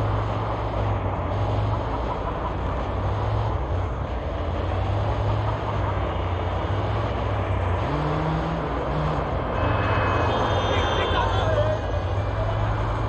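A van engine hums steadily as it drives along a wet street.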